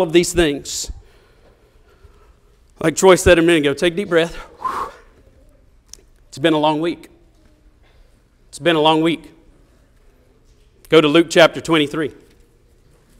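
A man speaks slowly and deliberately into a microphone in a large room, with pauses between phrases.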